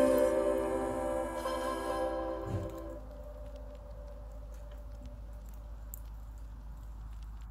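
A wood fire crackles and pops softly.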